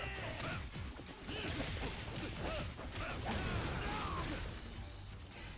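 Punches and blows thud hard in a fight.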